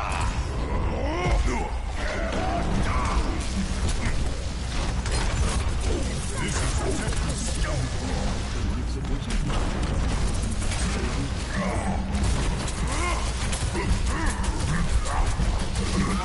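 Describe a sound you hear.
A gun fires rapid energy shots.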